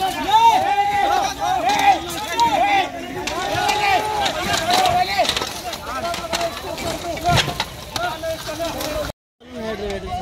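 Bricks and rubble clatter as they are moved by hand.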